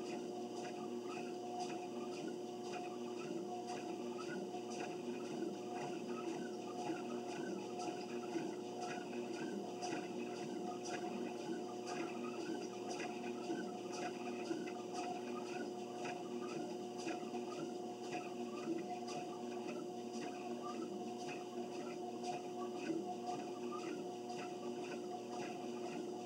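Feet thud in a steady rhythm on a treadmill belt.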